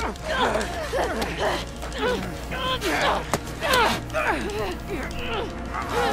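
A man snarls and growls with effort.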